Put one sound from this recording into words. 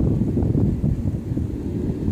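A golf club swishes and strikes a ball with a sharp click.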